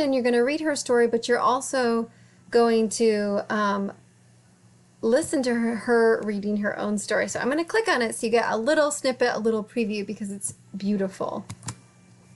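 A woman talks with animation into a close microphone.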